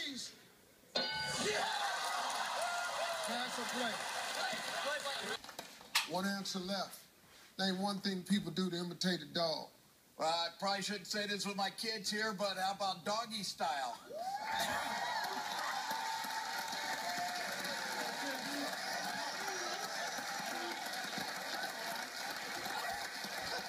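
A studio audience cheers and applauds loudly.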